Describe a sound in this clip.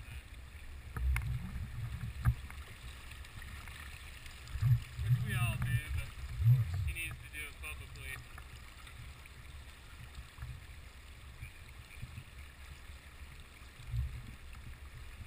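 Water rushes and gurgles against the microphone.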